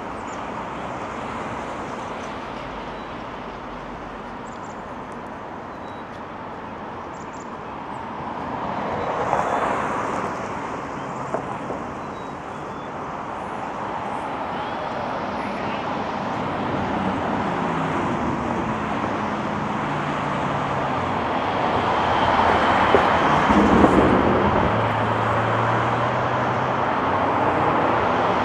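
Traffic hums steadily outdoors.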